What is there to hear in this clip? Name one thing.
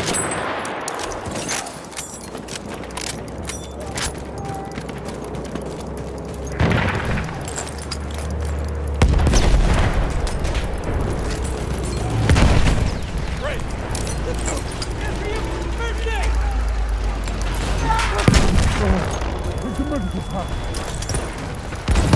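Distant gunshots crack repeatedly.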